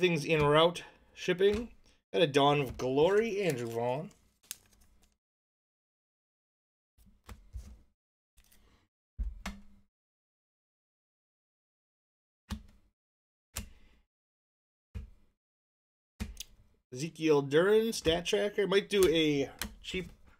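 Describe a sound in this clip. Trading cards click and shuffle in hands.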